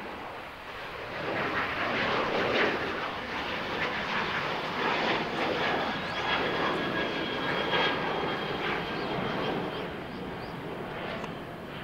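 A jet plane roars in the distance as it climbs away, then slowly fades.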